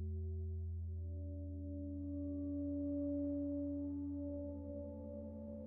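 A synthesizer drones with low sustained tones that slowly shift in pitch.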